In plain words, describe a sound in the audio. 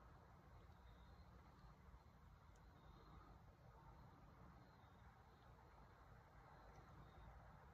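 Thick liquid trickles softly from a plastic cup.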